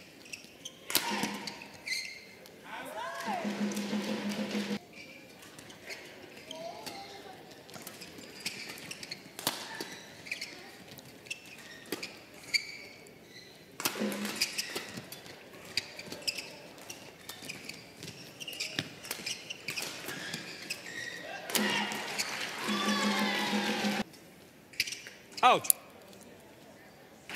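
A shuttlecock is struck sharply back and forth with rackets.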